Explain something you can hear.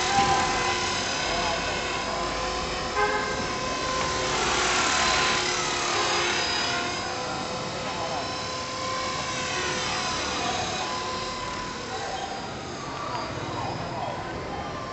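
A model helicopter's motor whines steadily overhead, its pitch rising and falling as it flies around.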